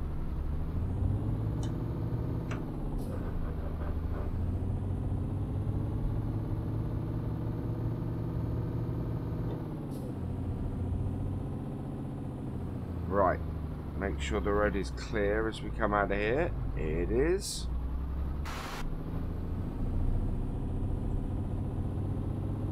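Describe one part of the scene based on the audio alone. A truck's diesel engine rumbles steadily, rising and falling as it drives.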